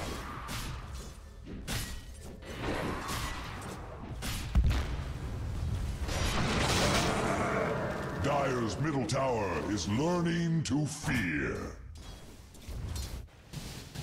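Magic blasts and weapon strikes crackle and thud in a fight.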